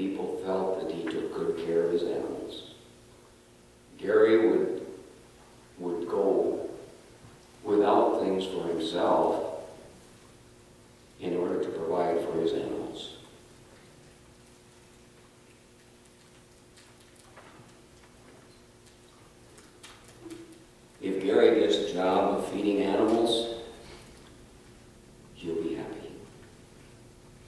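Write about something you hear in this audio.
An elderly man speaks calmly through a microphone, with pauses between phrases.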